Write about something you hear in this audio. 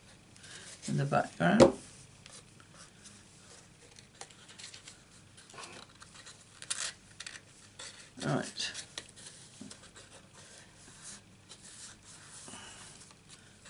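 Stiff paper rustles softly as hands fold and press it flat.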